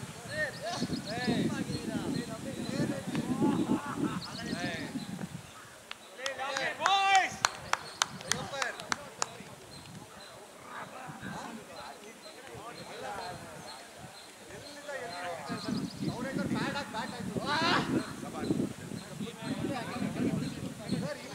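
Men call out and talk across an open field.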